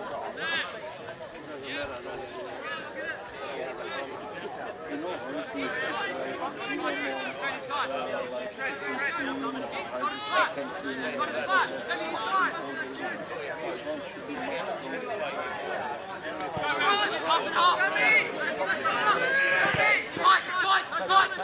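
Young men shout and call to each other across an open field outdoors.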